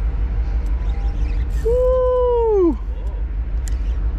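A fishing reel winds in line with a soft whirring.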